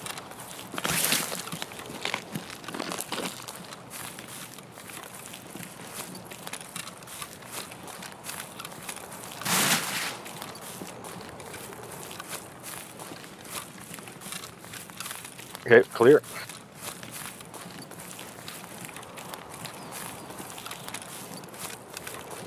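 Footsteps swish and rustle through tall grass.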